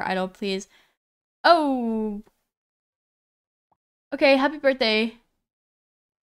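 A young woman speaks expressively into a headset microphone, in short bursts.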